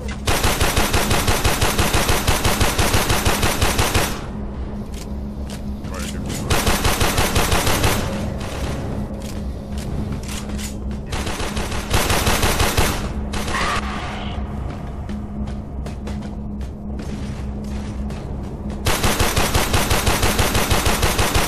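A rifle fires in rapid bursts, close by.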